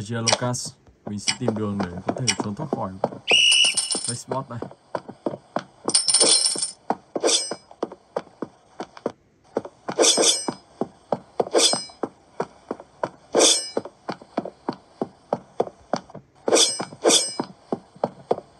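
Quick footsteps patter steadily on a hard floor.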